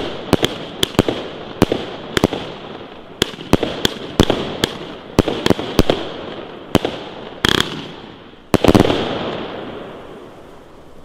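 Firework sparks crackle and hiss.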